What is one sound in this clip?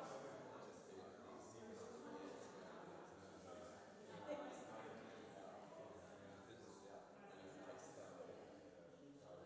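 Several adults chat quietly in a large echoing hall.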